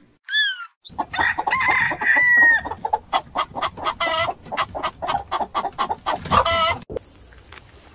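Many chickens cluck and squawk close by.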